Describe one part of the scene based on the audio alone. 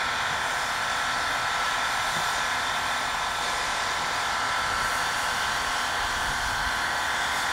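A steam locomotive hisses steadily, letting off steam close by.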